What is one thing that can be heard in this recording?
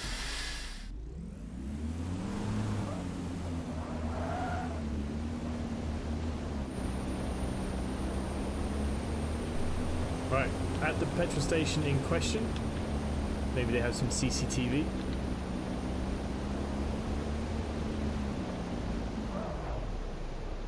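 A car engine hums and revs as the car speeds up and slows down.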